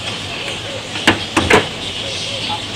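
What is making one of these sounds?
Wooden boards knock and clatter against a car's metal frame.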